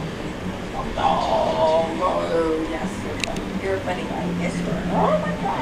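A woman talks softly and closely to a dog.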